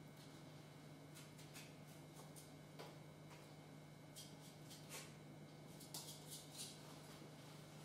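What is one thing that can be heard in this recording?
Small tools tap and click softly on a cake.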